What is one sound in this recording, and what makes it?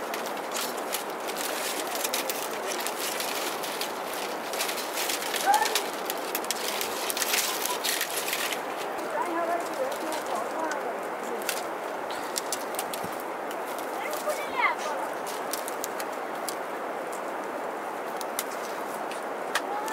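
Dry palm strips rustle and crackle as they are woven by hand.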